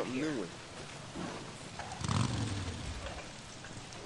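A motorcycle engine revs and idles nearby.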